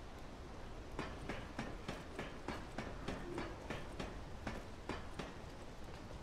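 Boots clank rhythmically on metal ladder rungs.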